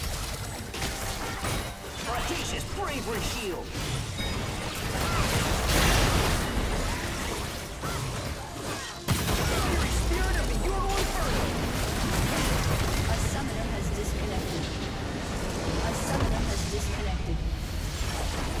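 Magic blasts whoosh and crackle in a hectic fight.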